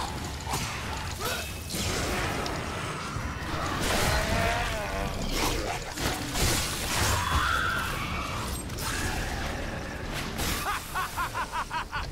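A blade slashes and strikes flesh repeatedly.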